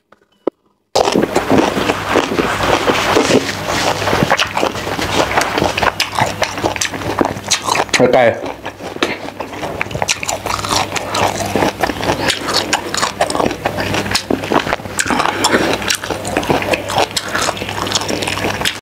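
A man chews and slurps food loudly close to a microphone.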